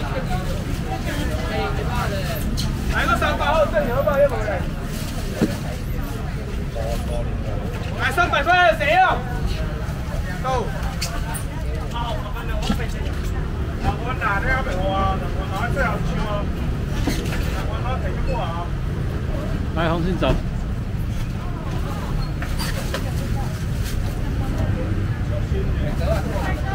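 Plastic crates and baskets knock and rattle.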